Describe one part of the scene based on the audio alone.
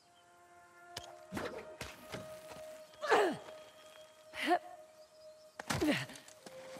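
Hands and feet thump against stone during a climb.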